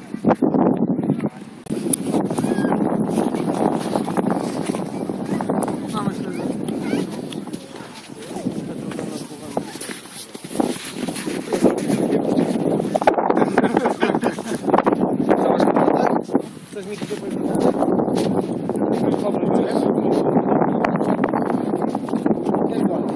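Strong wind blows outdoors, buffeting and rumbling in gusts.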